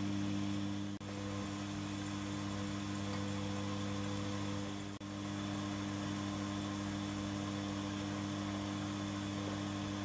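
A milling cutter grinds into metal.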